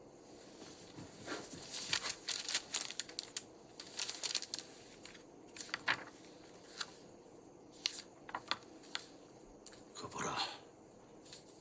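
Magazine pages rustle and flip.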